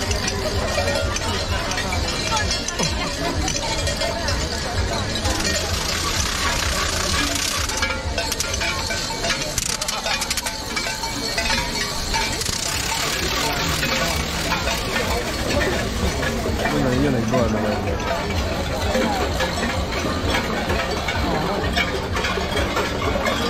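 A large outdoor crowd murmurs and chatters nearby.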